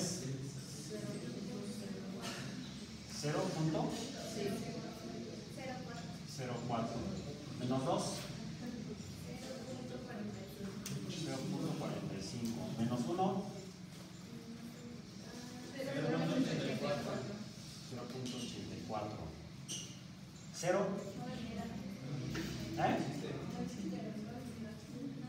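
A young man explains calmly, speaking close by.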